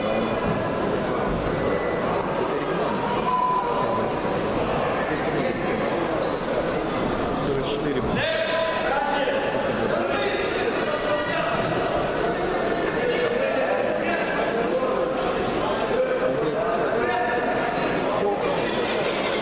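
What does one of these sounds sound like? A crowd murmurs and shouts throughout a large echoing hall.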